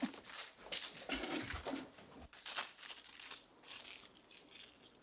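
Paper rustles as a pancake is unwrapped.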